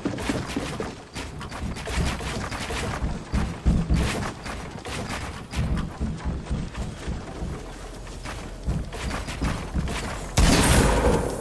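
Wooden building pieces snap into place in quick, rapid bursts.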